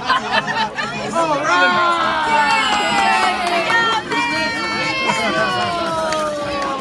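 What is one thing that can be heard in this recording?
Children and adults chatter and call out nearby outdoors.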